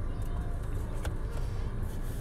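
A finger presses a phone's side button with a soft click.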